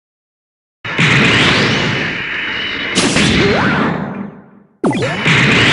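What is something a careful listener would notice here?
A sword swings with a loud whoosh.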